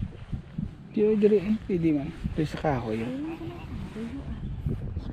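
A woman speaks nearby in a lively voice.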